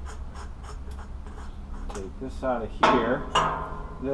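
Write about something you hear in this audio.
Small metal parts clink in a man's hands.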